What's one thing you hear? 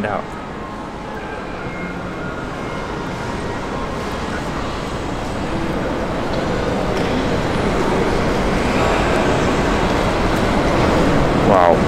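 A young man chews food with his mouth close to a microphone.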